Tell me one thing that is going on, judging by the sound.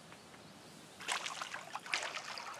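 Water splashes from a watering can onto soil.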